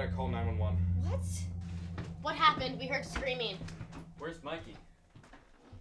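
Teenagers talk and laugh with animation close by.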